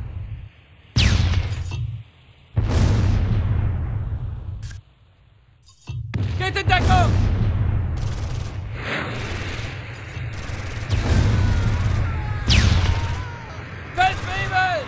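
Heavy explosions boom and rumble again and again.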